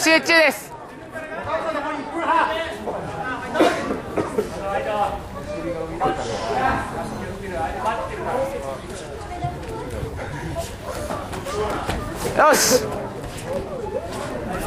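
Several men shout and call out encouragement in a large echoing hall.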